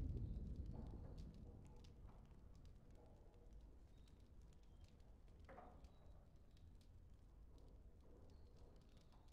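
A young man murmurs quietly close to a microphone.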